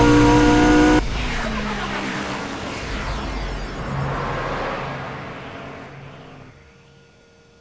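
A car engine idles and fades away.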